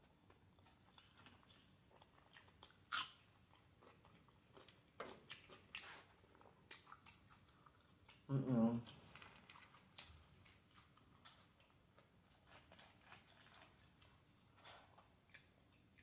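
A woman bites and chews food close to a microphone.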